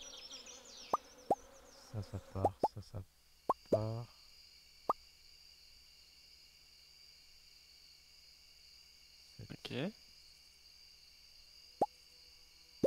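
Short soft clicks sound as items are moved around a game menu.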